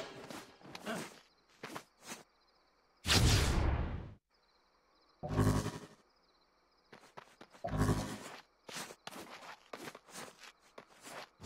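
Footsteps thud quickly across a hard rooftop.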